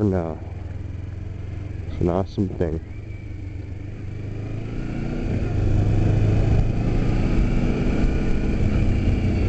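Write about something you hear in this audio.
A motorcycle engine drones and revs up sharply between gear changes.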